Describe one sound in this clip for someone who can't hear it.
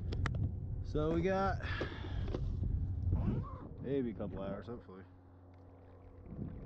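Small waves lap and splash against a boat.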